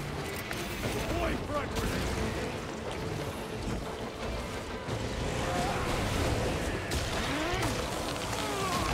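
Creatures shriek and screech.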